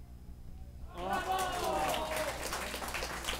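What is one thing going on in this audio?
Players and spectators shout loudly and excitedly.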